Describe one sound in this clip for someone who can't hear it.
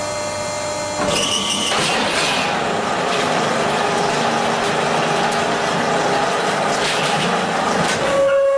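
A machine rattles and clatters loudly.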